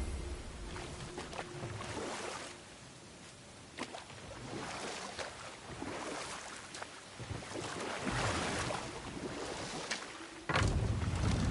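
Oars splash and paddle through water.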